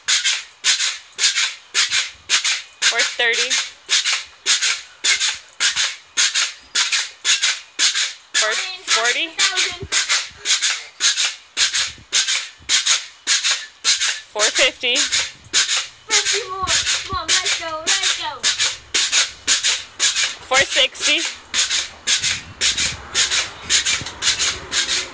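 A pogo stick thumps and squeaks rhythmically on concrete.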